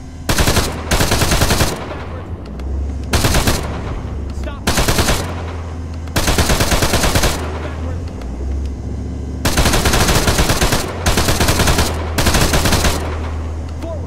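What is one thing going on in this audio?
A heavy machine gun fires in long rapid bursts.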